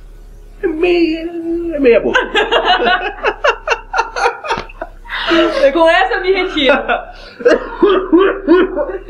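A young man laughs heartily close by.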